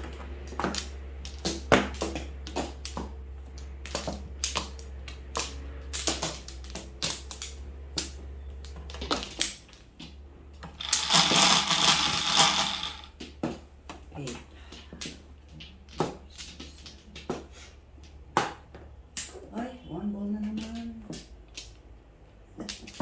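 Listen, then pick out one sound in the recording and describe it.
Mahjong tiles click and clack against each other.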